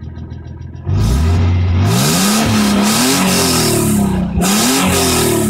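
A car engine revs hard and high, rising and falling repeatedly.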